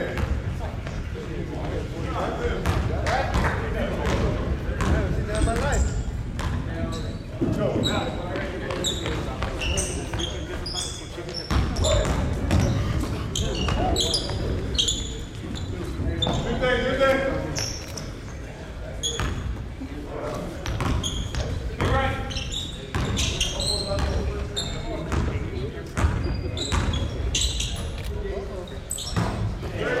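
A basketball bounces on a hardwood floor in a large echoing gym.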